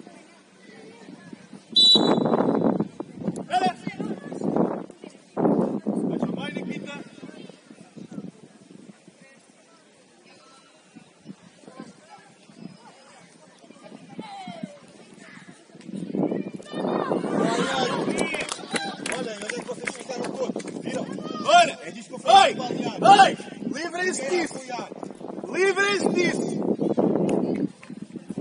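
Young players shout and call out across an open pitch outdoors.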